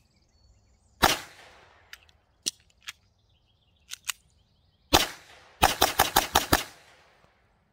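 Pistol shots ring out one at a time and then in a quick burst, echoing outdoors.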